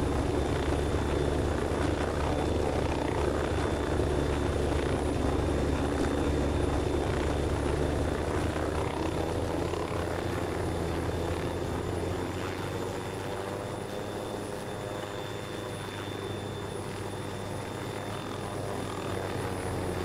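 A helicopter's rotor drones steadily and loudly.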